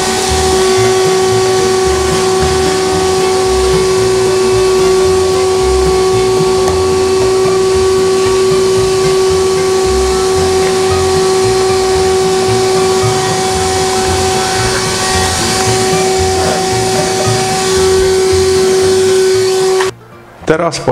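A vacuum cleaner hums and whines steadily nearby.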